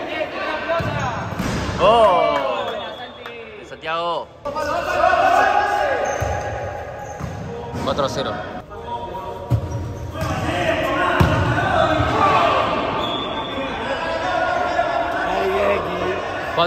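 Young men shout and call out to each other in an echoing indoor hall.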